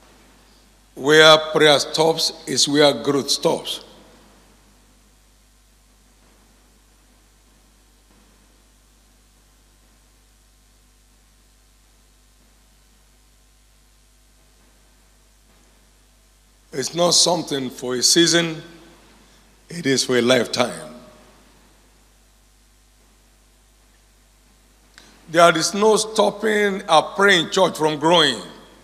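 An older man speaks calmly into a microphone, with long pauses.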